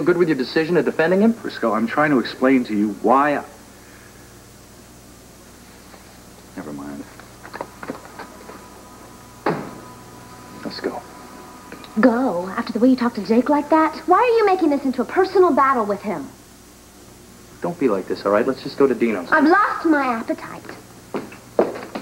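A man speaks with emotion at close range.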